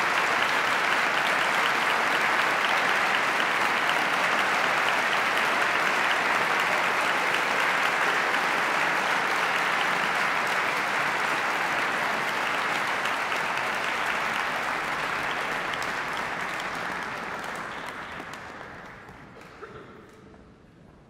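A large audience applauds in a big echoing hall, then the applause fades away.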